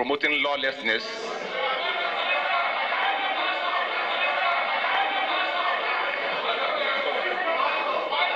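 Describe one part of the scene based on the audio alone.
A crowd murmurs and cheers loudly.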